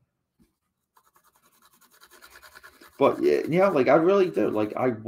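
A pencil scratches on cardboard.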